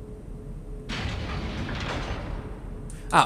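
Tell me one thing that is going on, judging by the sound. A metal shutter rattles as it rolls open.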